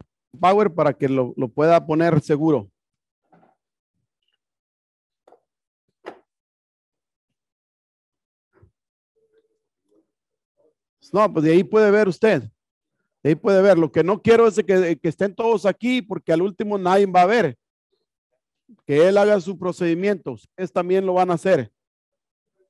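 A man talks steadily nearby, in short bursts with pauses.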